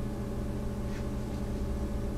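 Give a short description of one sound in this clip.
A small wooden block is set down on a hard floor with a soft knock.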